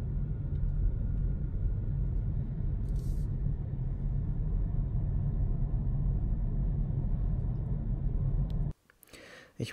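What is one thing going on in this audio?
A car's engine and tyres rumble steadily from inside the car as it drives along a road.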